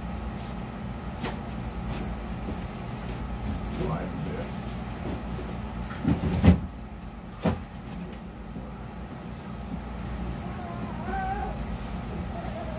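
An egg sizzles steadily in a frying pan.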